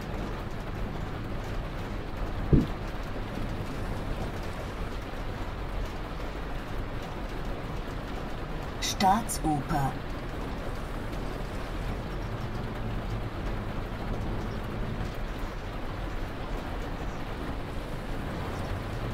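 Rain patters on the windscreen.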